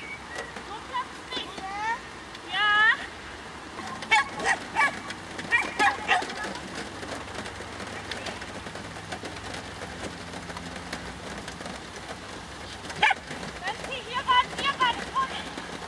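A woman calls out loudly from a distance outdoors.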